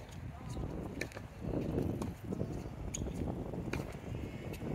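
A tennis ball is bounced on a hard court before a serve.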